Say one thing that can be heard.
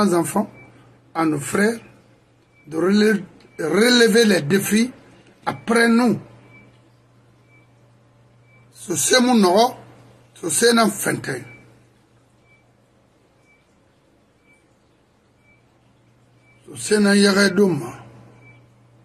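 A middle-aged man speaks into a microphone with animation, in short bursts with pauses.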